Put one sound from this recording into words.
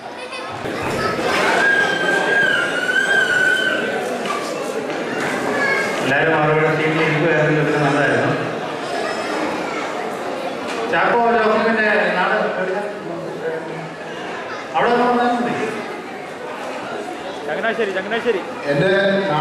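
A man sings loudly through a microphone and loudspeakers in an echoing hall.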